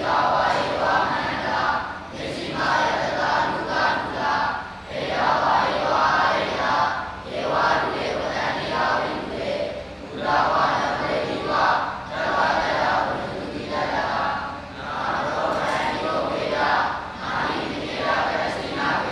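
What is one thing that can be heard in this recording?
A large group of young boys chant together in unison, echoing through the hall.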